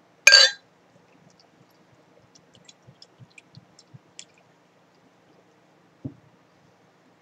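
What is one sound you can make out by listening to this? Beer glugs and fizzes as it pours into a glass.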